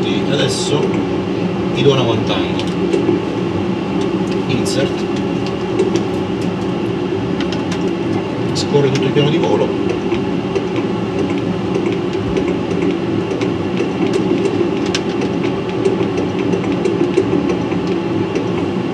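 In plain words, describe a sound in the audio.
Switches click softly now and then.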